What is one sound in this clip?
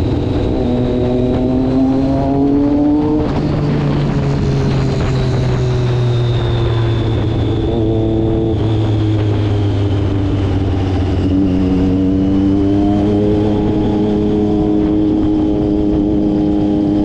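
A motorcycle engine hums and revs up and down close by.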